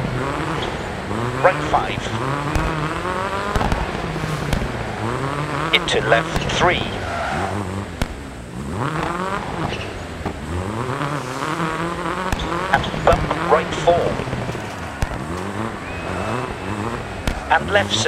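A rally car engine revs hard and shifts up through the gears.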